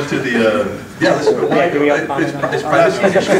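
A young man speaks into a handheld microphone.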